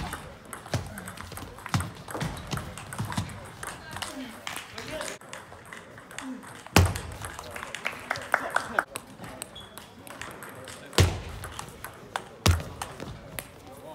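A table tennis ball clicks quickly back and forth off paddles and a table in an echoing hall.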